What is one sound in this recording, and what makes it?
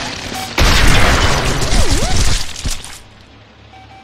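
A loud blast booms and then rumbles away.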